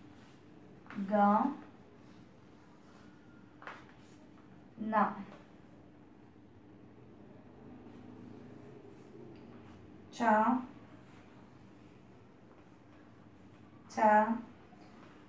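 A young woman says short syllables clearly, one at a time, close by.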